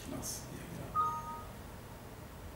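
A computer alert chimes briefly.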